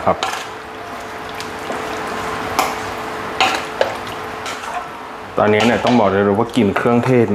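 A wooden spatula stirs and squelches through wet meat in a metal bowl.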